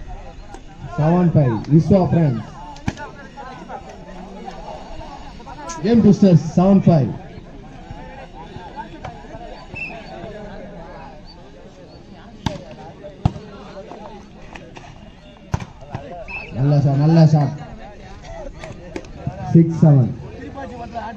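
Young men shout loudly outdoors during a game.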